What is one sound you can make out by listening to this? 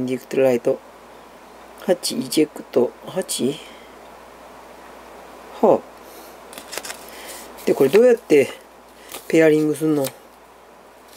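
A man speaks close by in short, halting phrases.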